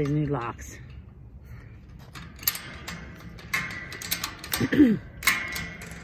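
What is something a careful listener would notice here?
A metal gate latch clicks and rattles as it is worked by hand.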